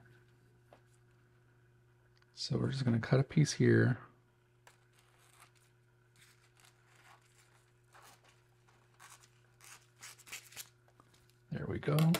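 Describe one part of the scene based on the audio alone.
Thin foil crinkles and rustles as it is handled.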